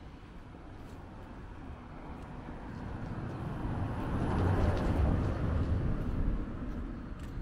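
A car approaches slowly on a paved street and passes close by.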